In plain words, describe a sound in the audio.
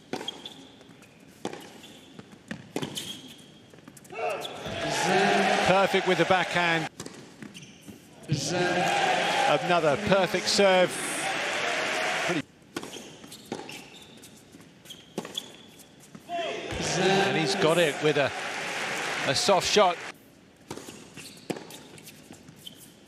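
A tennis ball is struck sharply back and forth.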